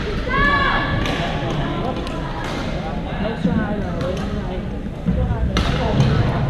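Several young adults talk and call out across a large echoing gym.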